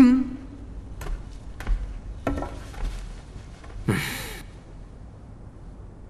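A blade scrapes and clinks as a sword is drawn.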